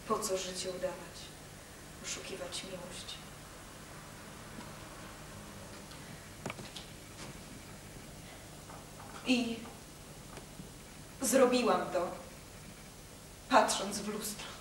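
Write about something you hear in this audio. A young woman speaks on a stage in short, emotional bursts with pauses between them.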